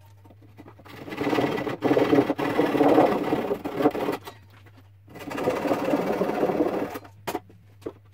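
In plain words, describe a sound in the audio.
A hand saw rasps back and forth through wood.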